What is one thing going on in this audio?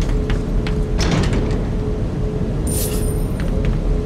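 A metal case clicks open.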